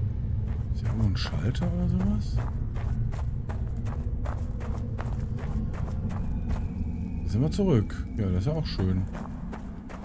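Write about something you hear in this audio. A man talks into a microphone close by.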